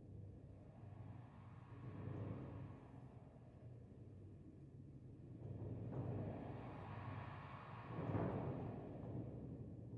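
An orchestra plays, swelling and falling in loudness.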